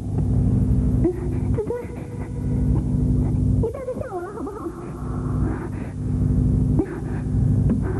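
A young woman calls out anxiously.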